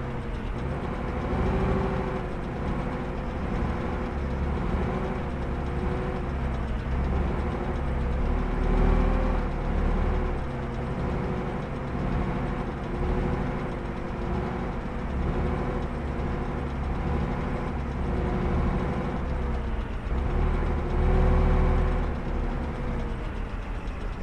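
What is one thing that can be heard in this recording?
A tank engine rumbles steadily as the tank drives along.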